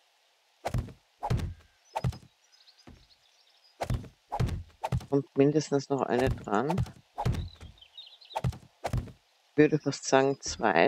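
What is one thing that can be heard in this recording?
Wooden blocks thud into place one after another.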